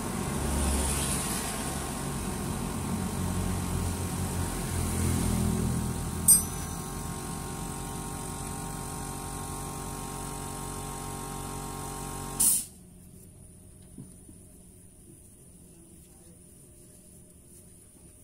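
A metal tool scrapes and clinks against a steel bracket.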